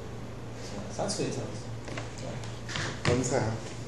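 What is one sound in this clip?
An elderly man speaks briefly and casually nearby.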